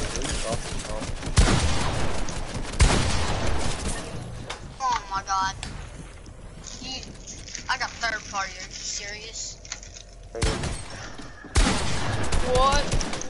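Gunshots crack in loud bursts.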